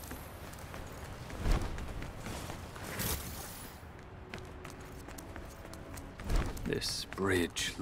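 Footsteps run over gravel.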